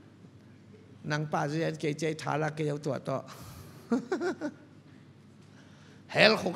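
A man speaks with animation into a microphone, heard through loudspeakers in a large echoing hall.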